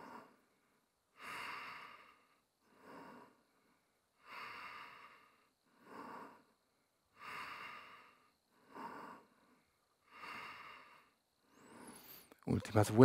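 A man breathes forcefully in and out in a regular rhythm.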